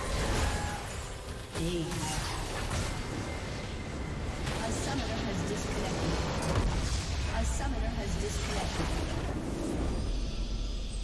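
Game spells and hits crash in a busy fight.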